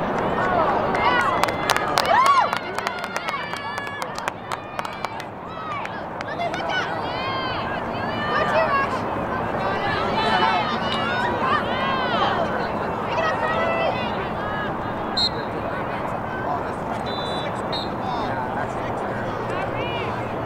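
Young women shout and call out to one another outdoors.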